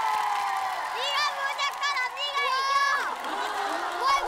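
Young girls squeal and shout excitedly.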